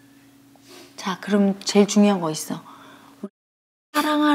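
An elderly woman speaks with strong emotion, close by.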